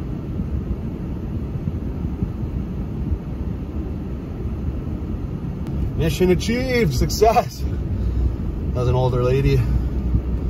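A car engine rumbles low and steady while driving slowly.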